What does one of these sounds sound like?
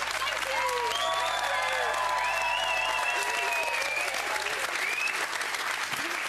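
A crowd cheers and whoops excitedly.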